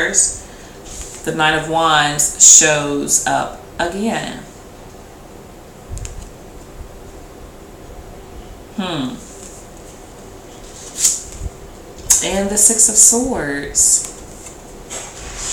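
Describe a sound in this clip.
Playing cards are handled and tapped down on a table.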